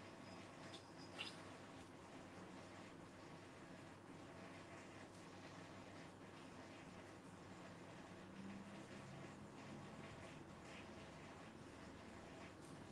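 Stiff paper rustles as it is handled.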